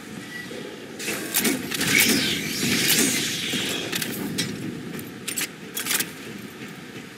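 A heavy gun fires bursts of shots that echo in a metal corridor.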